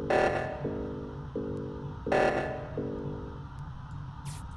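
Short electronic tones beep several times.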